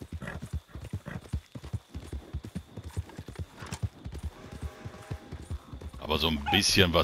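Horse hooves thud rapidly on soft ground.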